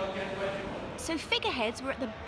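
A young child squeals in a high voice.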